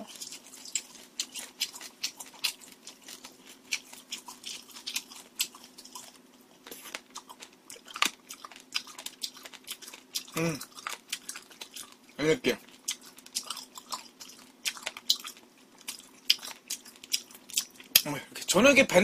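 A young man chews food loudly with wet smacking sounds close to a microphone.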